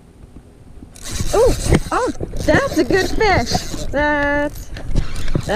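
A fishing reel clicks as it is wound.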